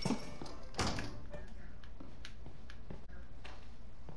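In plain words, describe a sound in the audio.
Footsteps thud on wooden floorboards.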